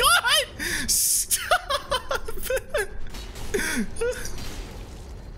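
Magic spells crackle and swish.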